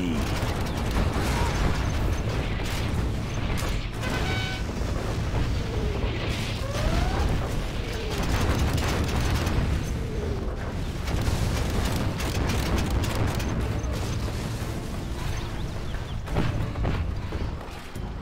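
Explosions boom and rumble again and again.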